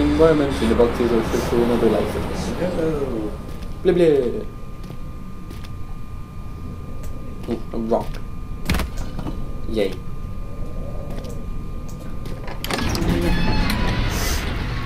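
A young man talks casually, close to a microphone.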